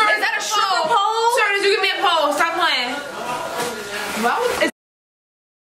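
A second young woman exclaims loudly in surprise.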